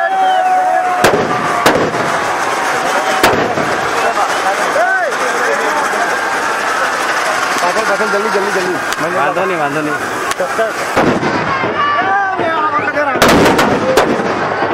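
Firecrackers go off with sharp bangs.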